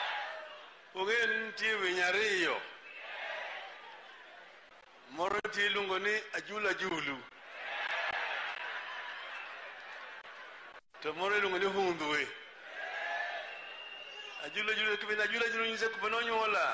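An elderly man speaks loudly and with animation through a microphone, in short bursts.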